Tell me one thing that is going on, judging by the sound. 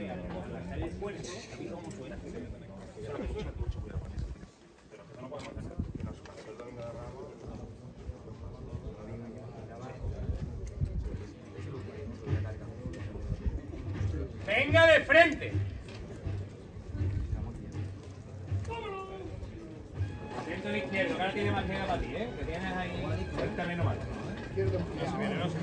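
Men murmur and talk nearby outdoors.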